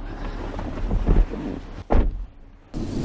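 A car door thumps shut.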